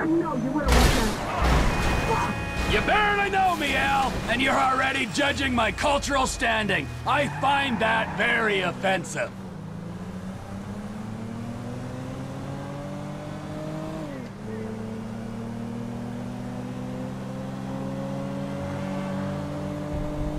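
A car engine hums steadily and rises in pitch as the car speeds up.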